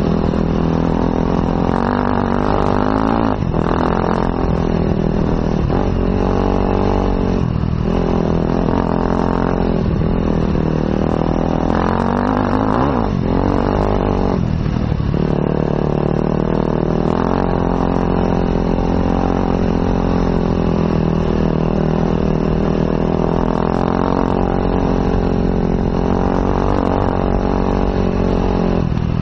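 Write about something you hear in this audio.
A motorcycle engine drones up close, its pitch rising and falling as it revs and shifts gears.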